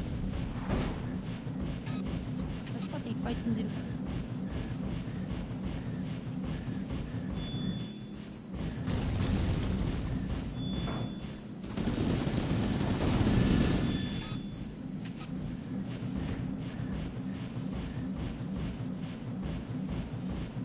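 Heavy mechanical footsteps thud as a large walking machine strides along.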